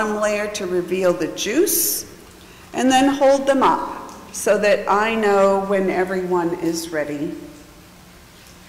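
A middle-aged woman recites a liturgy through a microphone.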